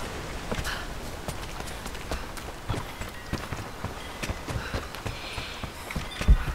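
Footsteps thud steadily on wooden steps and stone.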